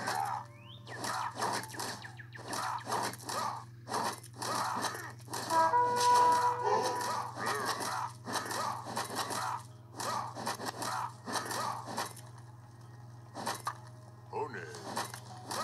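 Game sound effects play from a handheld console's small speaker.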